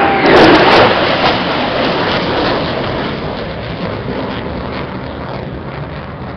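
A jet roars overhead and fades into the distance.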